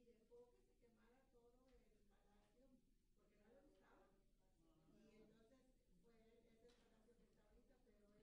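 A man lectures calmly through a microphone in a large echoing hall.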